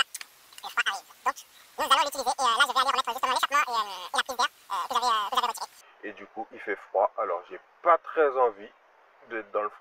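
A man talks close to a microphone with animation.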